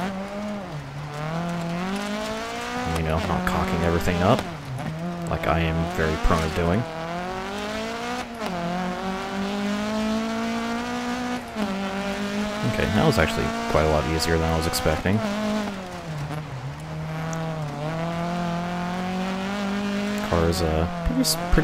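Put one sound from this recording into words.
A rally car engine revs hard, rising and falling as it shifts gears.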